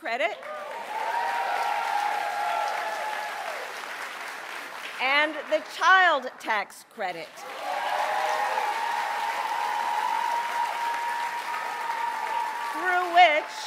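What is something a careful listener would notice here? A crowd cheers and chants loudly.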